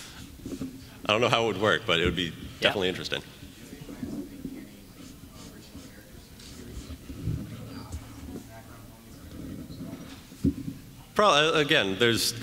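A man speaks into a microphone over loudspeakers in a large echoing hall.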